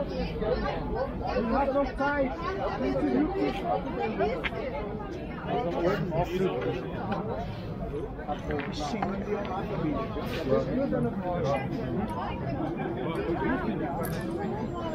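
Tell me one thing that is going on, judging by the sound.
Many men and women talk loudly over one another outdoors nearby.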